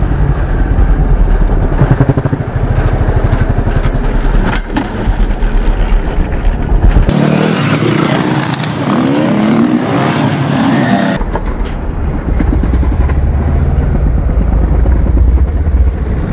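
A dirt bike engine roars and revs loudly, rising and falling in pitch.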